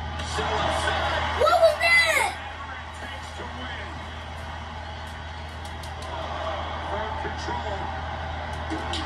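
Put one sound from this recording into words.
A crowd roars through a television speaker.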